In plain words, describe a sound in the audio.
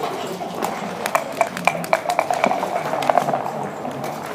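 Dice rattle and clatter across a wooden board.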